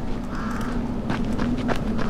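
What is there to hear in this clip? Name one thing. Leafy plants rustle as someone pushes through them.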